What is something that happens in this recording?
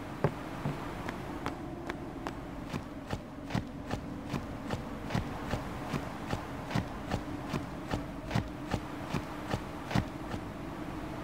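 Quick footsteps patter over soft ground.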